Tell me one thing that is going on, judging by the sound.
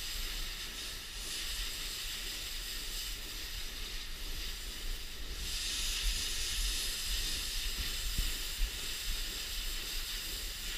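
A pressure washer sprays a hard, hissing jet of water onto a concrete floor.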